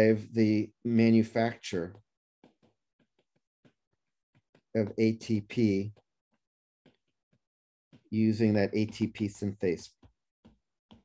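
A man speaks calmly into a microphone, explaining in short phrases.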